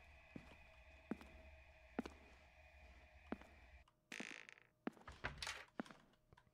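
Slow footsteps thud on a wooden floor indoors.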